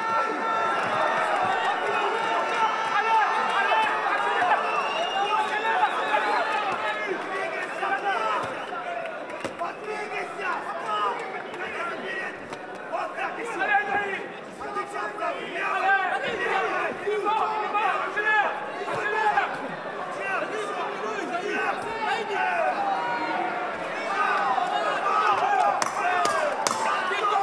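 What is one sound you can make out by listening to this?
A crowd shouts and cheers in a large hall.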